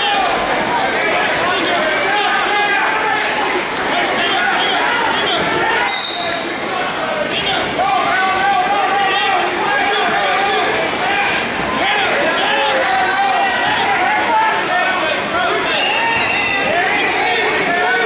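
A crowd of spectators shouts encouragement in an echoing hall.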